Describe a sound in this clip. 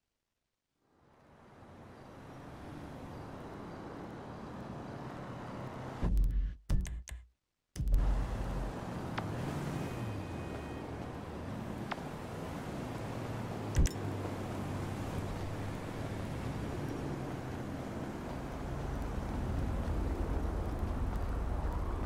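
Traffic hums steadily in a city at night.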